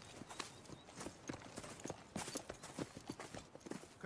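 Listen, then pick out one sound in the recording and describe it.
A horse's hooves thud slowly on the ground.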